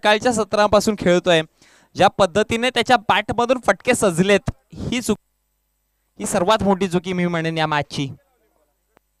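A man commentates with animation through a microphone.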